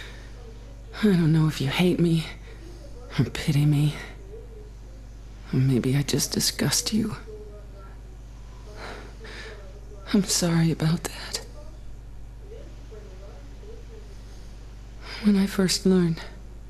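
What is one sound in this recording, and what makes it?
A young man reads aloud into a close microphone in short bursts.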